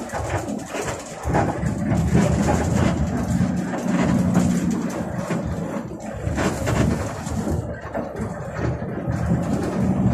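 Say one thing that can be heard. A bus engine rumbles steadily from inside the cab.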